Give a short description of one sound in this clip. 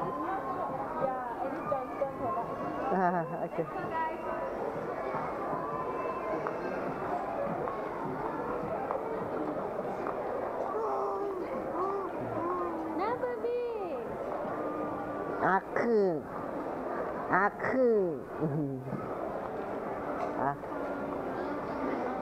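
A murmur of many voices fills a large, echoing indoor hall.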